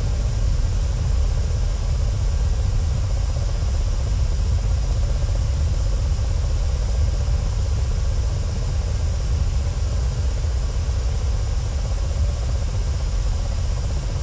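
A helicopter's engine and rotor drone steadily with a deep, low rumble.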